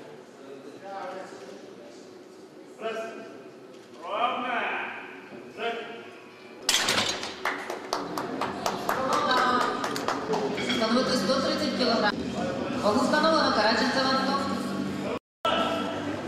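Men talk and call out loudly in an echoing hall.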